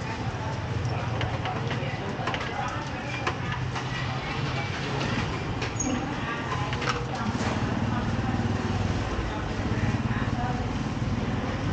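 Dishes and bowls clink as a man handles them.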